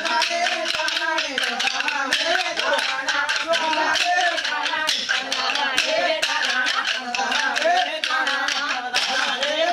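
Wooden sticks clack together in a rhythmic beat.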